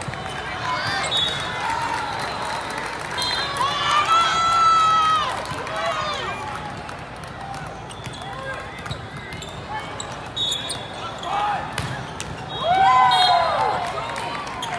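Sneakers squeak on a sports court.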